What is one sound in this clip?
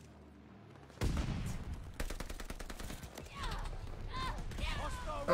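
Gunfire cracks in quick bursts.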